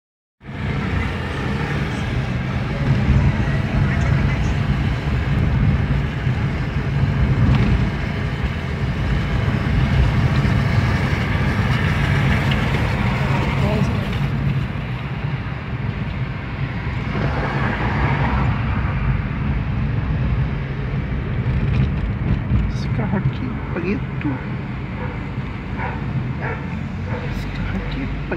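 A car engine hums steadily from inside the car as it drives along a town street.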